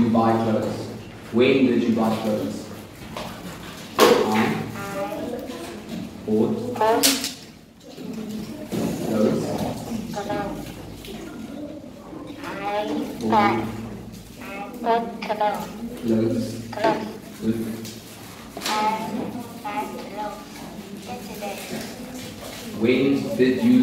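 A man speaks slowly and clearly nearby, as if teaching.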